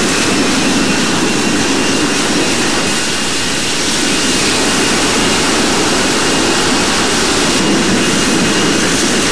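Jet engines roar steadily as an airliner rolls down a runway.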